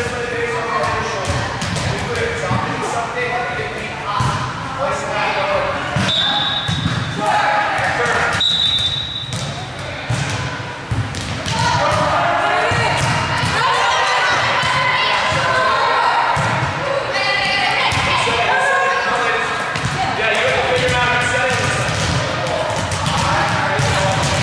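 Young women call out and talk in an echoing gym.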